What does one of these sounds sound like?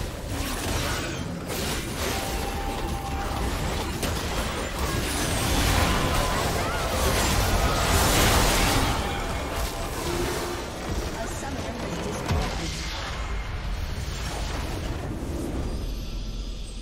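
Magic blasts, whooshes and clashes burst in a busy battle.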